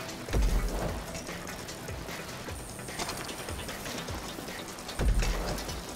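Bicycle wheels thump over bumps.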